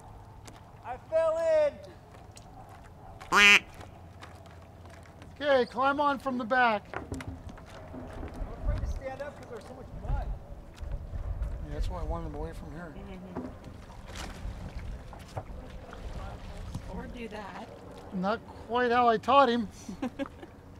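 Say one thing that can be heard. A man in the water speaks from a distance.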